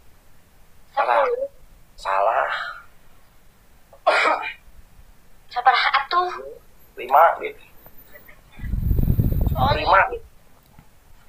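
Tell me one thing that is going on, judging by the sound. Young women talk in short bursts over an online call.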